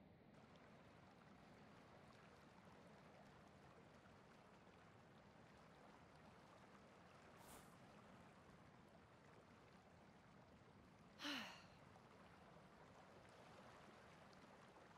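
Waves wash gently onto a shore.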